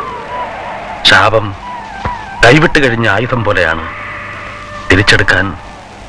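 A man speaks calmly and closely in short phrases.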